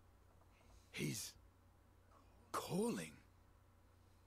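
A young man speaks briefly through a microphone.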